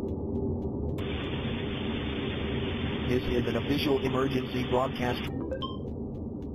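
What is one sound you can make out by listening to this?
A radio plays a muffled, crackly broadcast.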